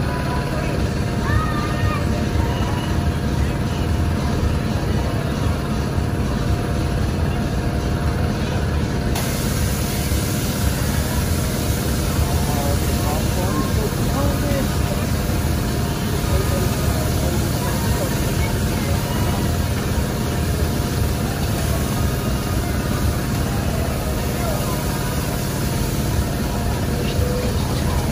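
A spinning fairground ride whirs and rumbles steadily.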